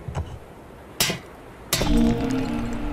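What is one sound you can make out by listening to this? A metal grappling hook clanks against rock.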